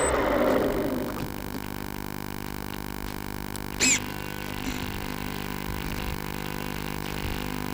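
An electric motor whines steadily up close.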